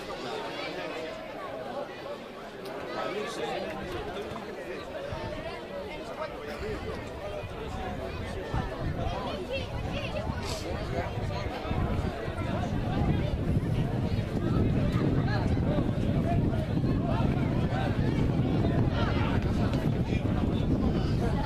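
Rugby players call out to each other across an open field.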